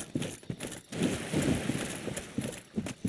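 Water rushes and splashes underfoot.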